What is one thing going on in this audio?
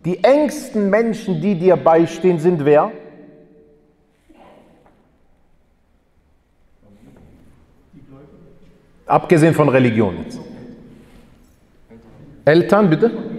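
A man speaks with animation into a microphone, in a room with a slight echo.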